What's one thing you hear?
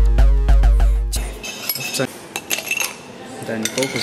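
Ice cubes clatter into a glass.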